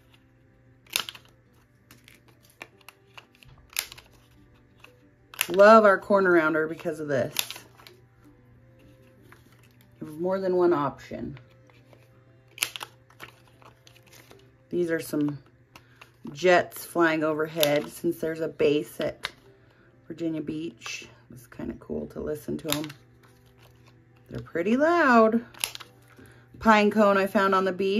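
A paper punch clunks as it cuts through card.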